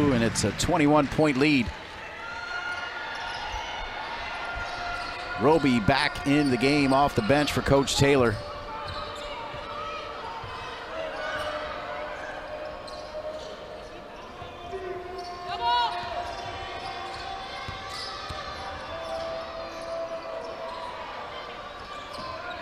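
A crowd murmurs steadily in a large echoing arena.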